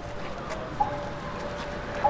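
A small hand bell rings.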